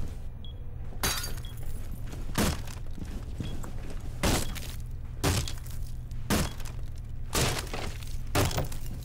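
Heavy blows smash and splinter wooden boards again and again.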